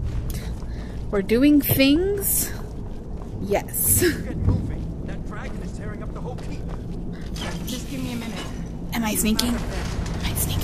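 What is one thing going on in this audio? A woman speaks casually, close by.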